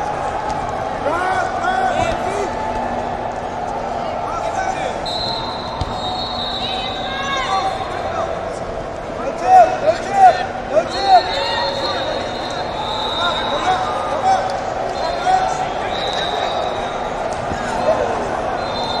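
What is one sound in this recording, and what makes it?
Shoes squeak sharply on a mat.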